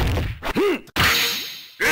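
A special move bursts with a loud whooshing blast.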